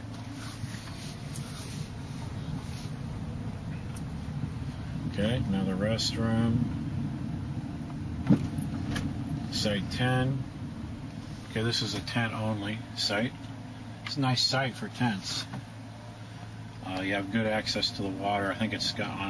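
A car engine rumbles steadily from inside the car.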